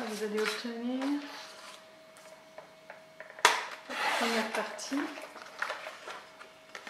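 A sheet of card rustles as it is handled.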